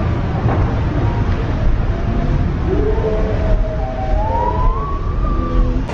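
Water rushes and splashes down a chute.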